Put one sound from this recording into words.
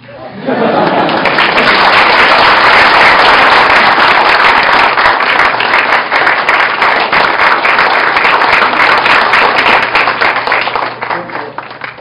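A crowd applauds loudly nearby.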